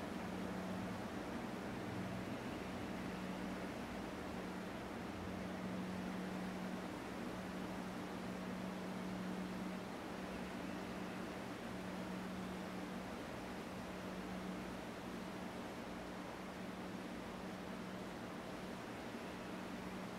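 A man hums a low, steady tone close by, pausing now and then for breath.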